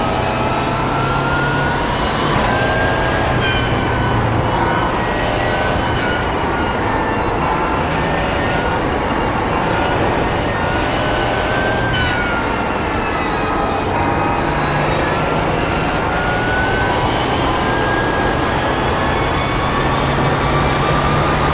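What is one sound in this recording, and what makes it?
A racing car engine roars loudly, rising and falling in pitch as it shifts gears.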